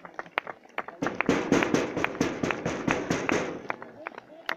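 A crowd claps and cheers from a distance.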